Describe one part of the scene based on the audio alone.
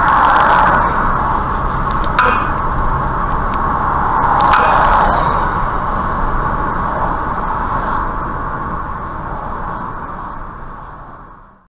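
Tyres roar steadily on a highway as a car drives along.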